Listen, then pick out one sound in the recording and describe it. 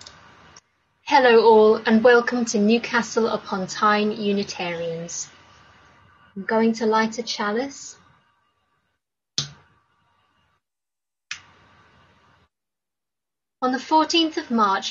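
A young woman speaks calmly and close to a microphone.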